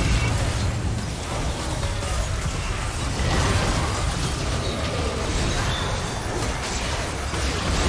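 Video game spell effects whoosh and crackle during a fight.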